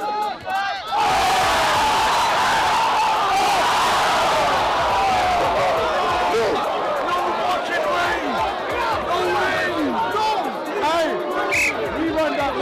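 A crowd of young men cheers and shouts loudly outdoors.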